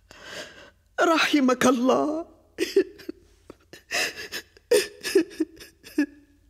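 An elderly woman speaks in a tearful, pained voice.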